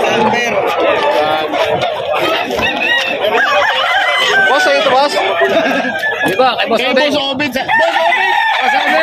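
A rooster clucks softly nearby.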